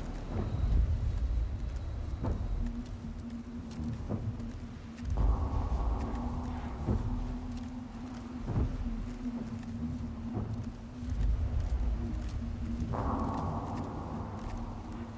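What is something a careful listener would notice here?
Footsteps crunch and snap over dry branches.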